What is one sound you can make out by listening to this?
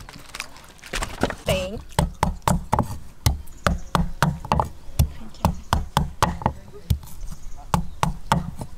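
A cleaver chops steadily on a wooden board.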